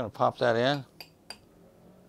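A spoon scrapes and stirs in a glass bowl.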